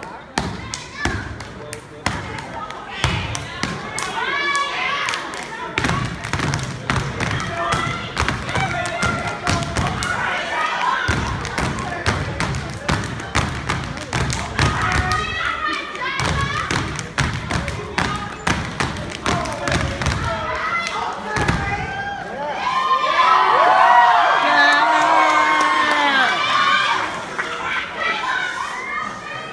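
Boots stomp hard on a wooden stage in a fast rhythm.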